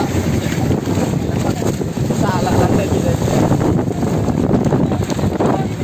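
Waves slosh against a boat's hull.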